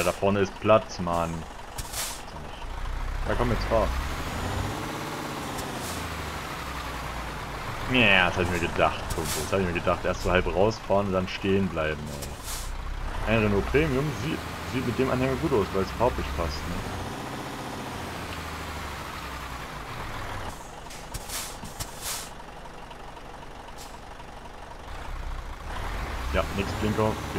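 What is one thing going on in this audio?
A heavy truck engine hums steadily as it drives.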